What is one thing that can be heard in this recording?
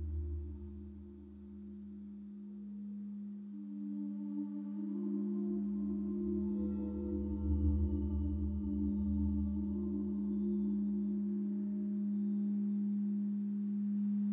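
A keyboard plays slow, sustained notes.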